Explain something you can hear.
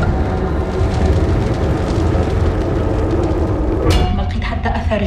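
A large fire roars steadily.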